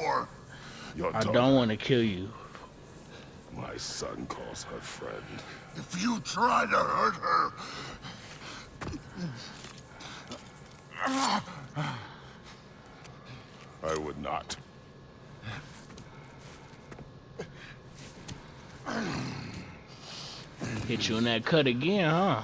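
A deep-voiced man speaks gravely, close by.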